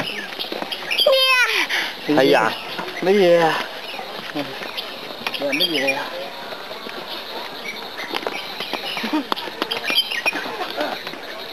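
A toddler girl babbles and squeals close by.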